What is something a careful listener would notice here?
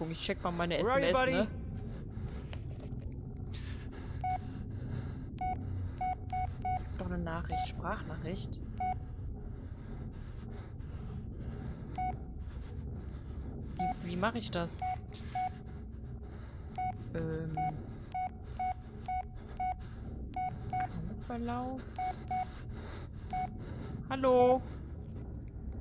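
A young woman talks with animation into a headset microphone.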